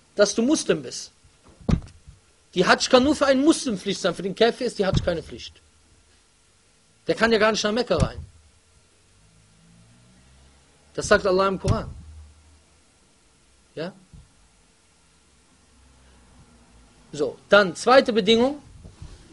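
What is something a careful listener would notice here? A man speaks with animation into a microphone, in bursts with pauses.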